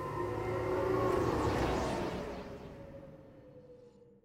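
A heavy sliding door whooshes open with a mechanical hiss.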